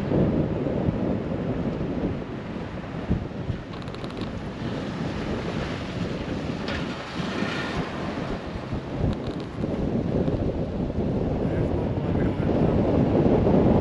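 A truck's engine rumbles steadily while driving.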